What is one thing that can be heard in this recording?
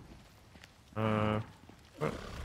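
A large animal lets out a deep, drawn-out bellow close by.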